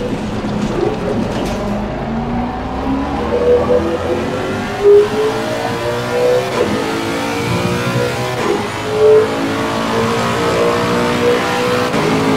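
A racing car engine roars and rises in pitch as the car speeds up through the gears.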